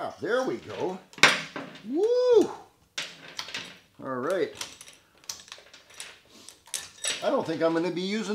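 A saw chain rattles and clinks as a man handles it.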